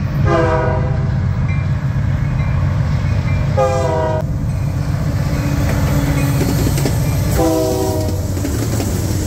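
A locomotive horn blares in long loud blasts.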